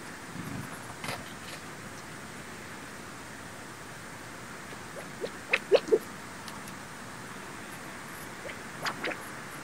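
Small birds chirp in short bursts nearby.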